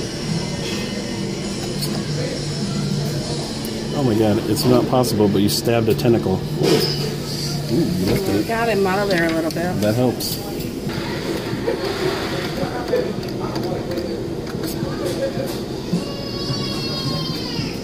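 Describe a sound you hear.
A claw machine's motor hums steadily as the claw moves.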